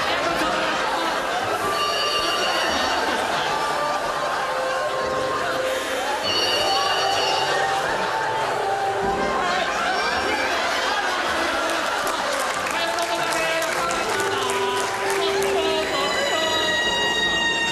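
An audience laughs loudly in a large hall.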